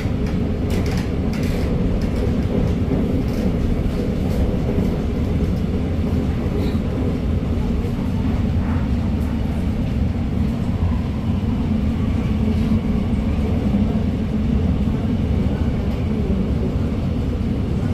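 A train rumbles steadily as it runs along the track.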